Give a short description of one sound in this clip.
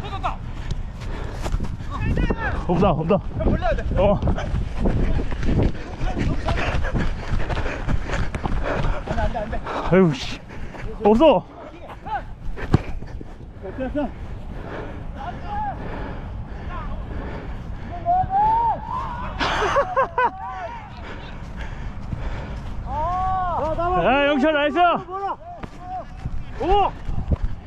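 Young players shout to each other across an open outdoor field.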